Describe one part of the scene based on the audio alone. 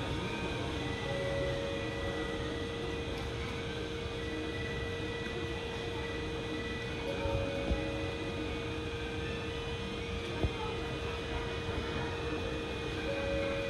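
A stopped train hums steadily in an echoing station.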